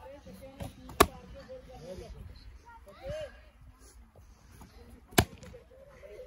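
A foot strikes a padded kick target with a sharp smack.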